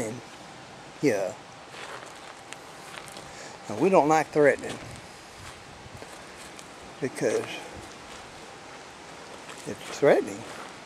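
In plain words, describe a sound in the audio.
An older man speaks in short bursts close by, outdoors.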